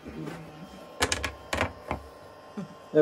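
Wood knocks against a board.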